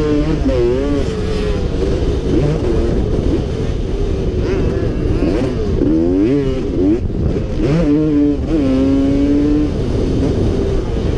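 Wind rushes loudly over the microphone.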